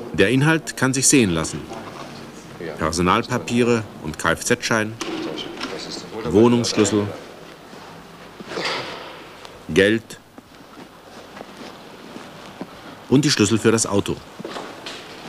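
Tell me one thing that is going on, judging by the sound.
Hands rummage through a leather bag, rustling softly.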